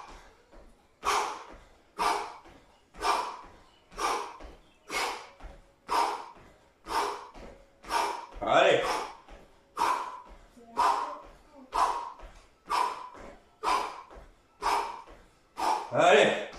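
A young man counts out loud in a steady rhythm.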